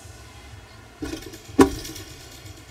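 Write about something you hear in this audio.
Feet land with a sharp thud on a wooden beam.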